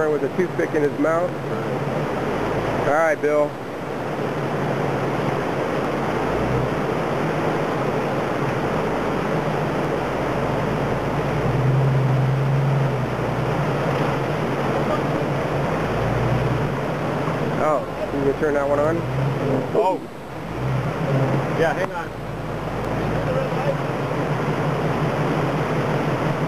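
A mountain stream rushes loudly over rocks.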